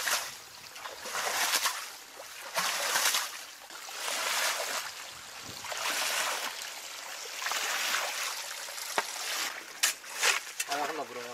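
Muddy water gurgles and sloshes on the ground.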